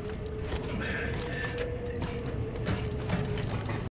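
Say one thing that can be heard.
Metal rungs clank as someone climbs a ladder.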